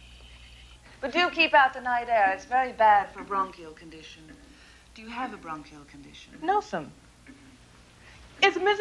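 Another woman answers with animation in an echoing hall.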